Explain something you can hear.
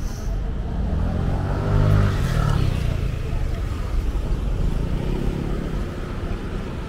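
A motor scooter passes close by with a rising then fading engine hum.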